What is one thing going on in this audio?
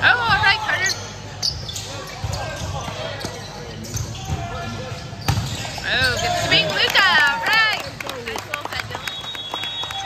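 Young men shout and cheer excitedly in a large echoing gym.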